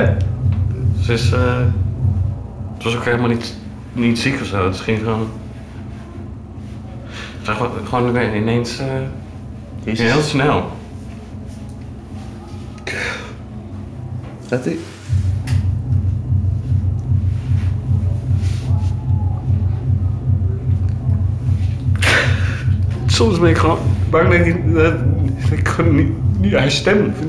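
A young man speaks nearby in a quiet, hesitant voice.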